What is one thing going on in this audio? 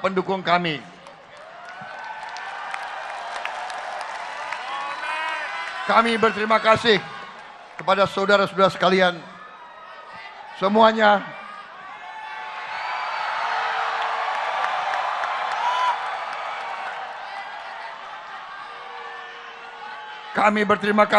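A large crowd cheers and chants in response.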